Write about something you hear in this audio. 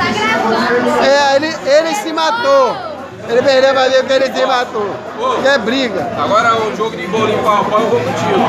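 A man speaks loudly and excitedly close by.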